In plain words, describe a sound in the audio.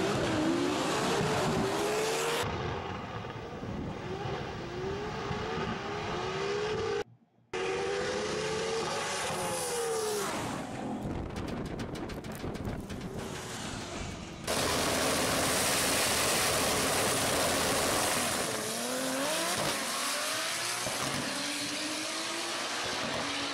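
Drag racing car engines roar loudly and rev up and down as cars speed away.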